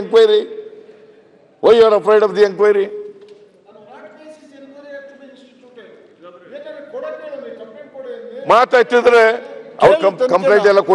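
An elderly man speaks forcefully into a microphone in a large hall.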